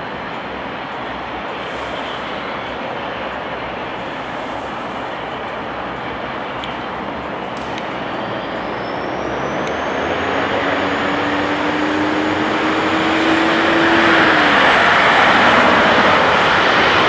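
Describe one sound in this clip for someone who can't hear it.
A propeller plane's engines roar steadily, growing louder as the plane speeds up along the runway.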